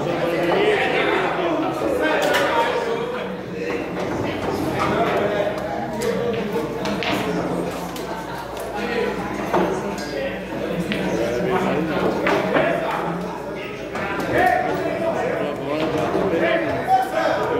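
Several men talk and chatter nearby in a room.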